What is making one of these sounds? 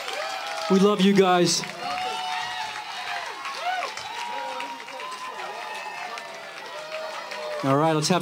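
A live band plays upbeat music.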